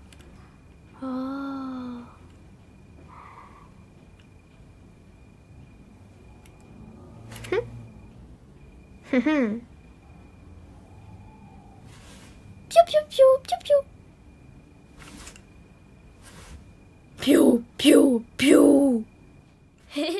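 A young girl speaks and gasps softly nearby.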